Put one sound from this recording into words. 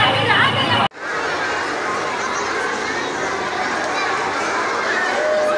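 A group of young children chatters in an echoing room.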